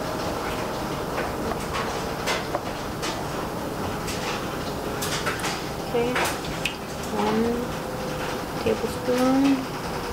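A bottle cap is twisted open and shut with small clicks.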